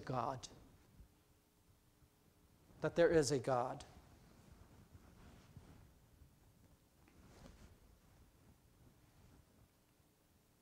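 A middle-aged man speaks through a microphone in a large, echoing room.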